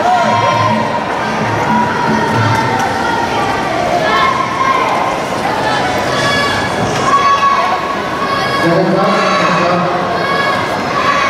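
A crowd chatters and shouts in a large echoing hall.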